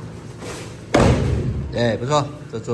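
A body thuds onto a padded mat.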